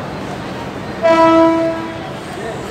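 A train horn sounds a short loud blast.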